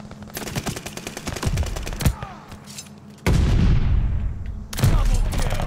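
Gunshots crack in rapid bursts, close by.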